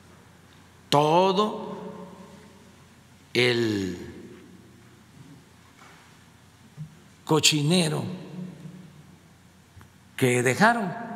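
An elderly man speaks slowly through a microphone in an echoing hall, with long pauses.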